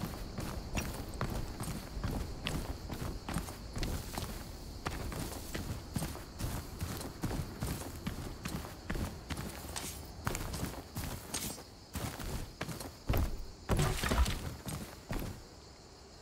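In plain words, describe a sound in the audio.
Footsteps crunch quickly over dirt and rock.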